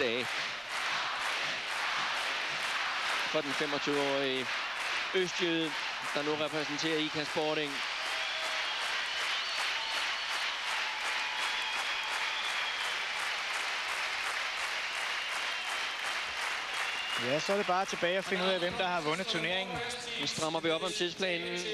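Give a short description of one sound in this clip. A large crowd claps in steady rhythm in a big echoing hall.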